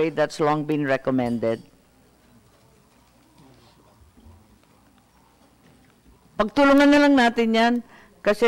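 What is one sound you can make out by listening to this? A woman speaks firmly into a microphone.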